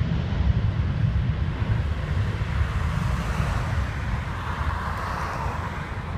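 A car drives past on an asphalt road.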